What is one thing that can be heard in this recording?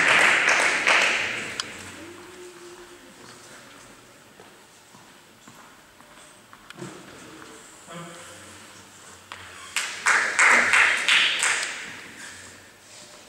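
A small crowd claps in a large echoing hall.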